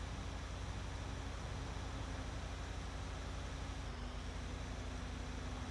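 A heavy truck engine drones steadily.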